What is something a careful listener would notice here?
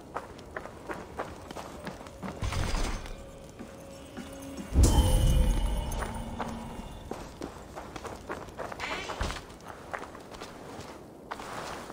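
Footsteps tap on a stone floor.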